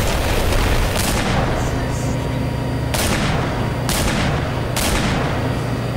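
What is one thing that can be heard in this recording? Pistol shots crack out sharply, a few at a time.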